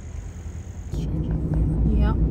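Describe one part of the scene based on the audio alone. Car tyres roll on a paved road.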